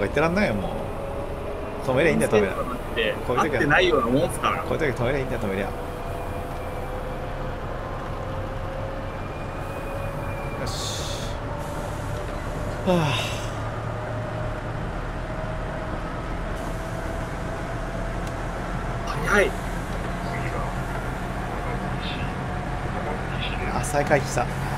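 An electric train motor whines, slowly rising in pitch as the train speeds up.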